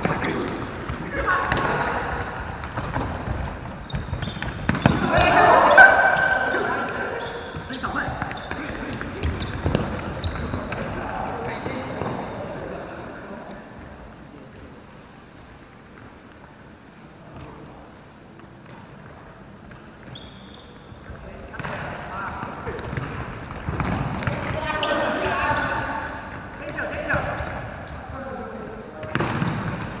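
A futsal ball is kicked on a wooden floor.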